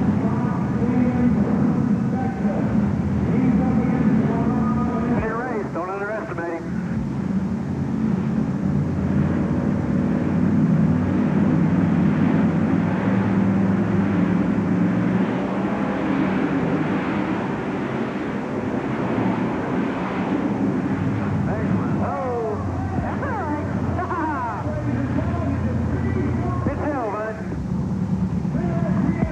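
Monster truck engines rumble and roar loudly in a large echoing arena.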